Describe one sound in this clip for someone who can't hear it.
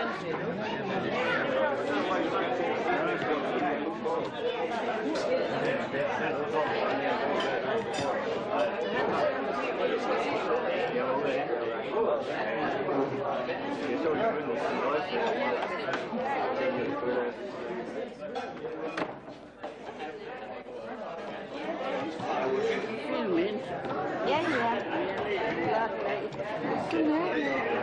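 A crowd of adults chatters and laughs all around.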